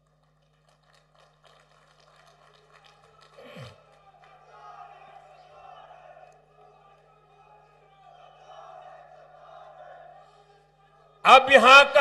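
A large crowd murmurs and cheers in the distance.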